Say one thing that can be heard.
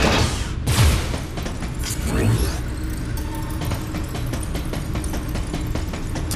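Heavy metallic footsteps clank in quick succession.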